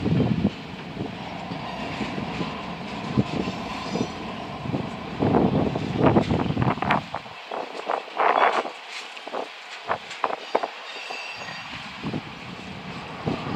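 A freight train rumbles past at a distance, its wheels clattering on the rails.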